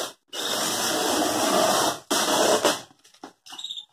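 Tape rips off a cardboard box.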